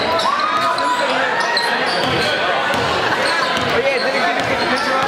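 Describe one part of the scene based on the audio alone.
A large crowd murmurs and cheers in an echoing gym.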